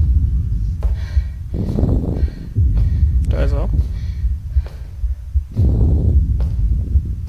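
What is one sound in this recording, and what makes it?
Footsteps thud on a hard floor in an echoing corridor.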